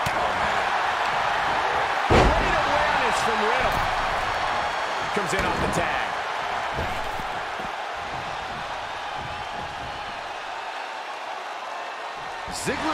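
A large arena crowd cheers and roars steadily.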